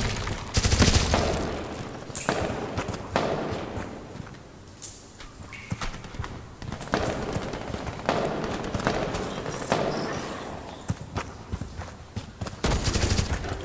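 Footsteps splash through water and grit in an echoing tunnel.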